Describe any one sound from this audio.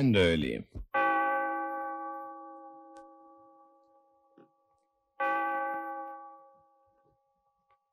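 A wall clock chimes with ringing tones that slowly fade.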